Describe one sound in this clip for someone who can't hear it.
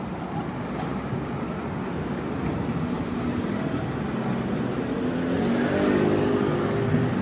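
A person wrapped in fabric rolls over a concrete sidewalk, the cloth scuffing and rustling.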